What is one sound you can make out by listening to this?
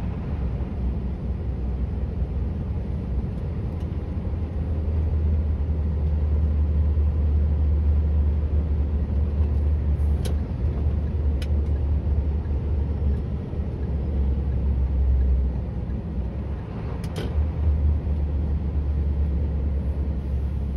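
A truck engine rumbles steadily from inside the cab while driving.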